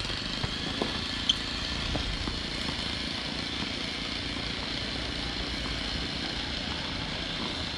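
Tennis shoes scuff and tap on a hard court.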